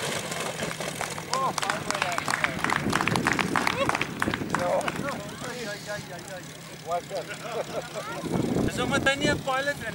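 A model airplane engine idles and sputters nearby.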